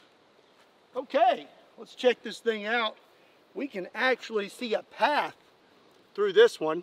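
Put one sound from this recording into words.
A man speaks calmly and close by, outdoors.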